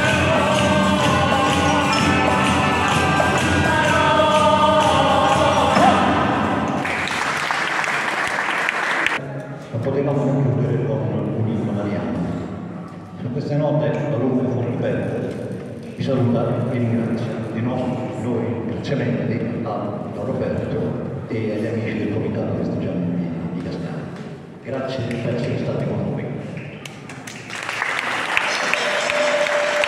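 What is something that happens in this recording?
A small folk band plays a lively tune.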